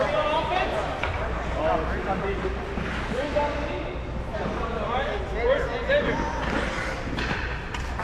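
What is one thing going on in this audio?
Young players shout and call to each other in a large echoing hall.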